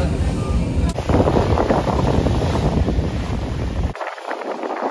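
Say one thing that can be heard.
Water churns and splashes against a ferry's hull.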